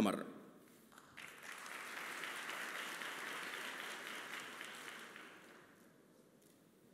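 An audience applauds in a large hall, then fades out.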